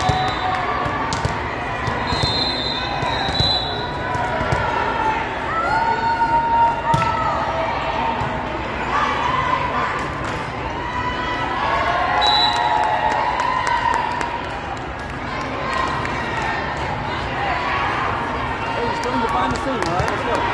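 Many young girls and spectators chatter and call out in a large echoing hall.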